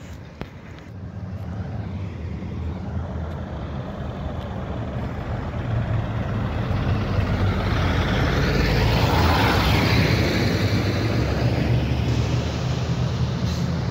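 A heavy truck's diesel engine rumbles as it approaches and roars past close by.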